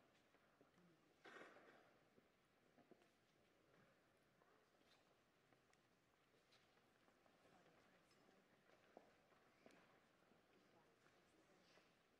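Footsteps shuffle softly on a stone floor.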